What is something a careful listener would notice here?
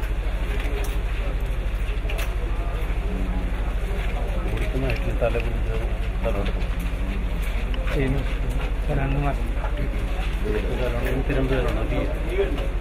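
Men and women murmur and talk quietly in a crowd nearby.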